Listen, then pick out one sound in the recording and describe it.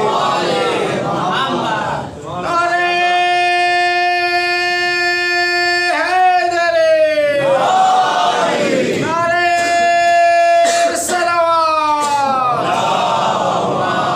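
A man speaks and chants in long, drawn-out melodic lines into a microphone.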